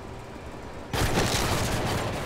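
A thrown grenade thuds and blasts.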